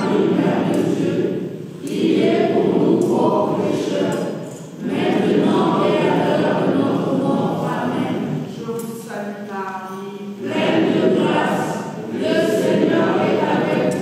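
A crowd of men and women sings together in a large, echoing room.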